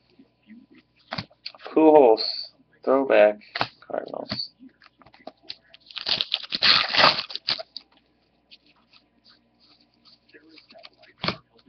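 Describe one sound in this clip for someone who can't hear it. Trading cards rustle and slide as they are shuffled.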